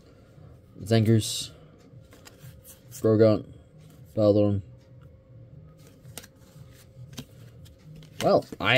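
Playing cards slide and flick against each other.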